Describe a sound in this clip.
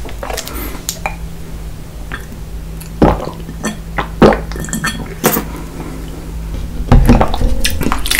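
A man gulps down water.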